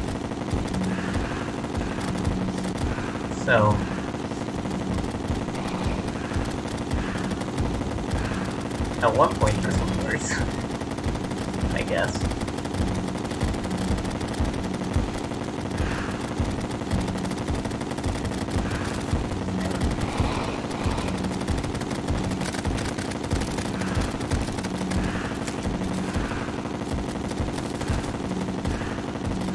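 Rapid video game weapon shots fire in a steady, fast rhythm.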